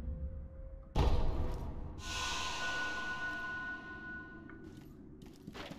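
A soft magical shimmer rings out and fades.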